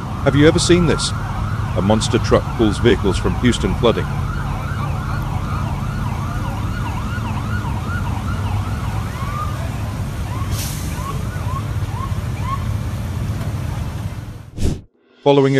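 A large truck engine rumbles steadily at idle.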